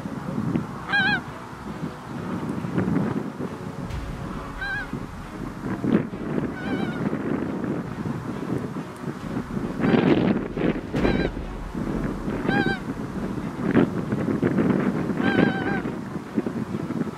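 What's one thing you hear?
Geese call in the distance.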